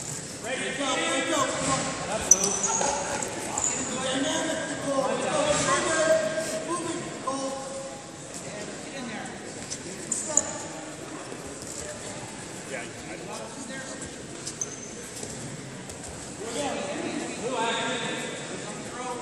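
A man shouts instructions in a large echoing hall.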